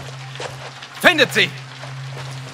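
A man speaks loudly and tensely nearby.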